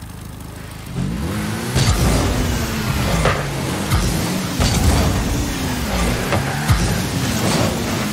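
A video game car's engine roars as it boosts.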